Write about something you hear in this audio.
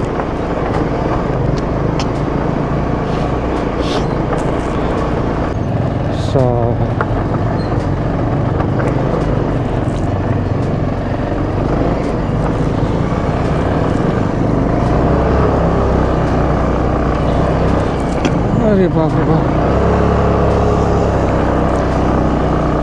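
Stones and gravel crunch and rattle under motorcycle tyres.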